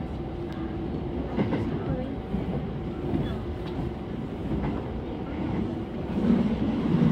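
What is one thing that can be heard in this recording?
Train wheels click and squeal over rail joints.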